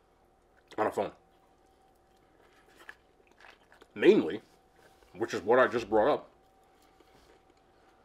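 A man chews food with soft crunching.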